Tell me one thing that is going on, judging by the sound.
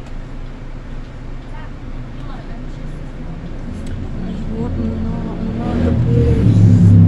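A bus engine rumbles low and steady, growing louder toward the end.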